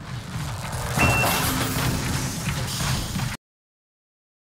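Gunfire and blasts crash in a video game battle.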